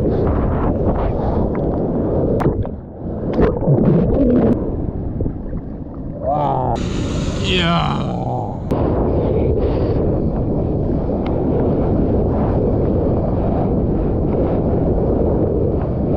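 Churning whitewater rushes and roars close by.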